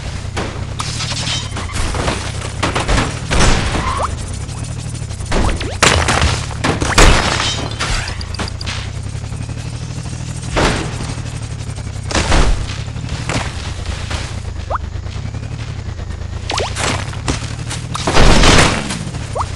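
Game crashes and hits burst out now and then.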